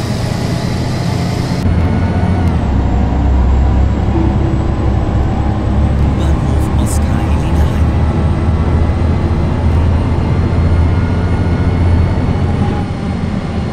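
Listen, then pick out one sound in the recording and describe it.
A bus engine hums low and steady as the bus drives along.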